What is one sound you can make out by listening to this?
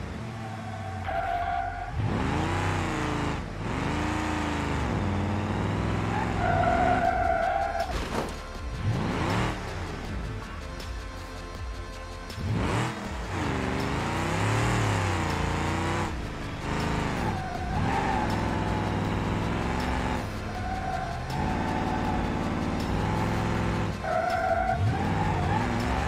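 Tyres squeal as a car slides around corners.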